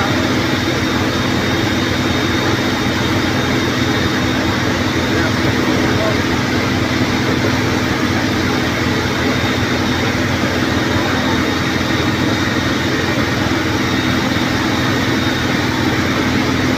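A fire engine's motor runs steadily nearby.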